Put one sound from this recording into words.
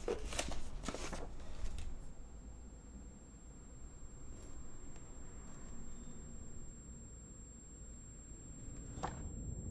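Paper rustles as a hand leafs through letters and books.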